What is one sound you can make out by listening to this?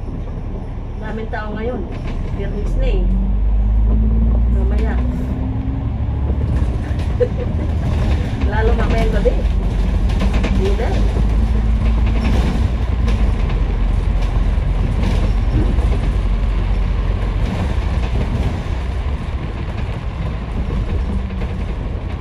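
A bus engine rumbles steadily while driving along a street.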